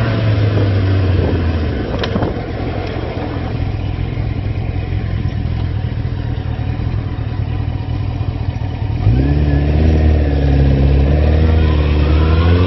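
A motorcycle engine rumbles close by.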